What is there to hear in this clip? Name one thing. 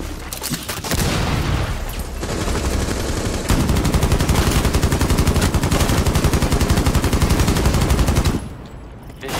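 A rifle fires rapid bursts at close range.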